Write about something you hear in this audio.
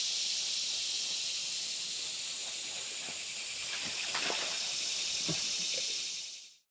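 A shallow stream trickles and gurgles softly over stones, outdoors.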